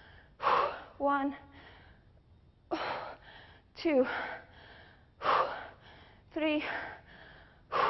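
A young woman talks calmly through a clip-on microphone.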